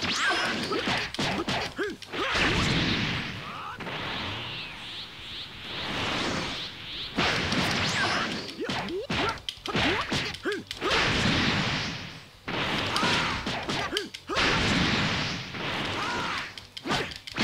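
Punches and kicks land with sharp impacts.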